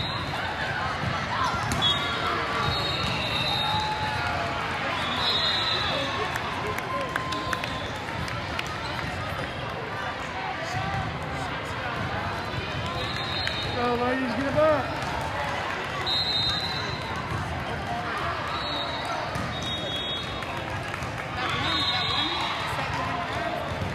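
A crowd chatters throughout a large echoing gym.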